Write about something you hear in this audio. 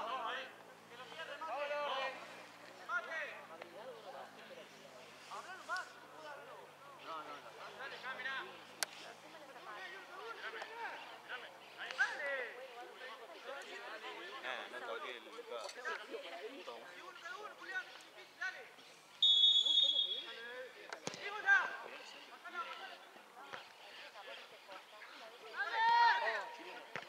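Men shout and call out across an open field.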